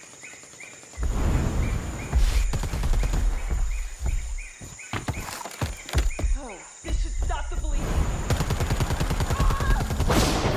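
A creature leaps and lands heavily among branches.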